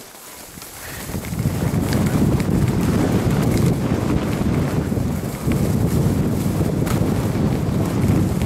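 Wind rushes loudly past the microphone.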